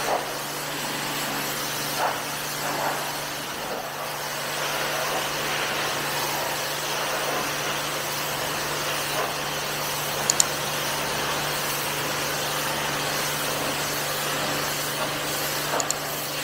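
A pressure washer sprays a hissing jet of water onto a rubber mat.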